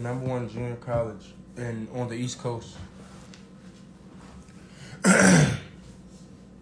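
A young man talks casually, close to a phone microphone.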